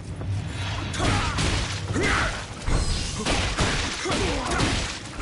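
Sword blades slash and strike in quick bursts.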